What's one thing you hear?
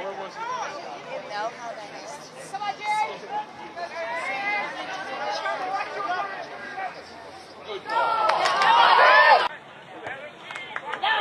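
Players shout across an outdoor field.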